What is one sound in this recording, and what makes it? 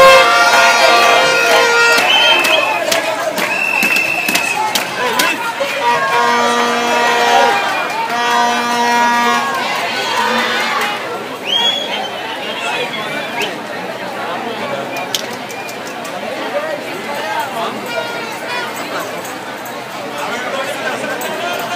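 A large crowd of marchers talks and calls out outdoors.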